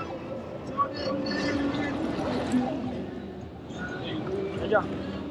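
A woman talks and calls out nearby outdoors.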